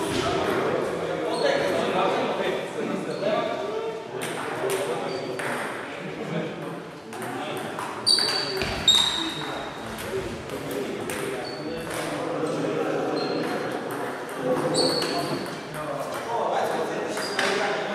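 A ping-pong ball clicks back and forth off paddles and a table, echoing in a large hall.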